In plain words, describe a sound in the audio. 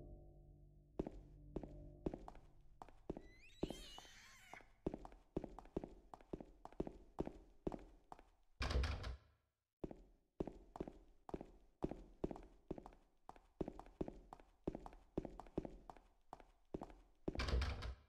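Slow footsteps thud steadily on a hard floor.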